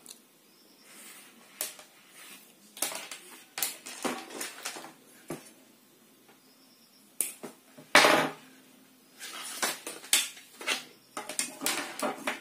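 A plastic-coated wire rustles and scrapes across a table.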